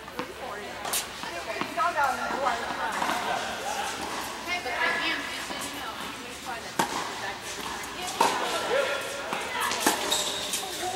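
A tennis racket hits a ball in a large echoing hall.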